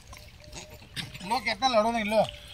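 Monkeys squeal and chatter nearby.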